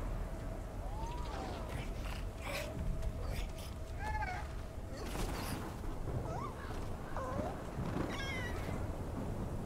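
A griffon squawks sadly several times.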